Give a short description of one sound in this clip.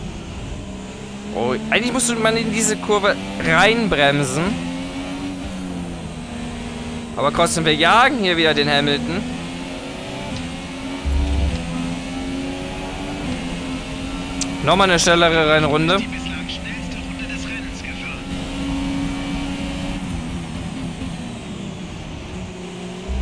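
A racing car engine roars and whines, rising and falling in pitch as it shifts gears.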